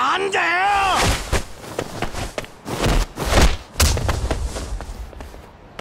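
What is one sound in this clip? A fist punches a man with heavy thuds.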